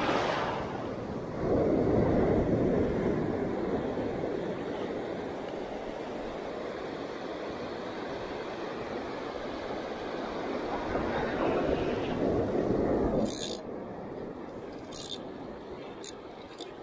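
Surf waves wash and break onto the shore.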